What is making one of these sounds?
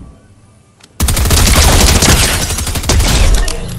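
A gun fires in a rapid, loud burst.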